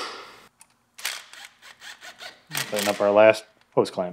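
A cordless power ratchet whirs in short bursts.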